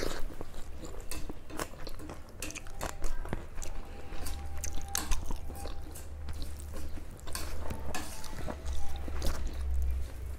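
A person chews and smacks loudly close by.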